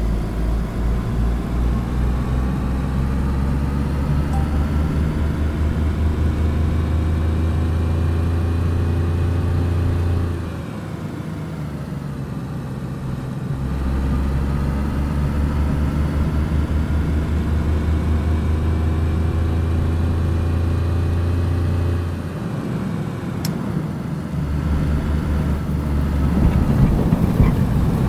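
Tyres rumble over a rough road.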